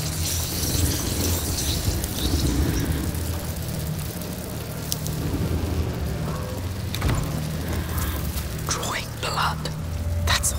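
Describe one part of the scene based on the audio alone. Torch flames crackle softly.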